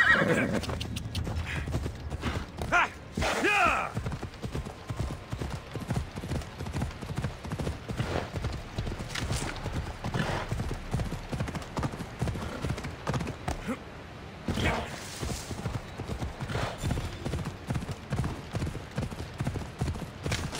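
Horse hooves thud steadily on grassy ground.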